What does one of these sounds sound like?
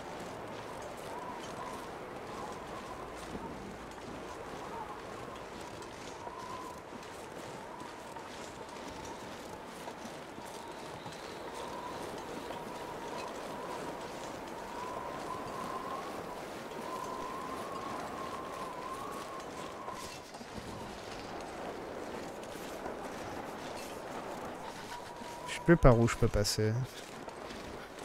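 A blizzard wind howls steadily outdoors.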